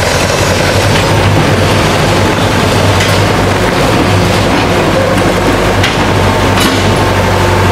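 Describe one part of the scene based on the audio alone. Cables and gears clank and rattle.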